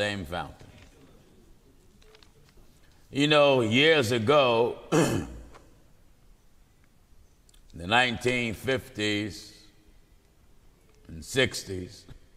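A middle-aged man speaks slowly and emphatically into a microphone, with pauses between phrases.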